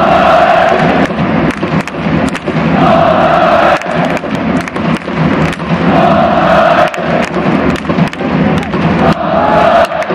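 A crowd of fans claps in rhythm.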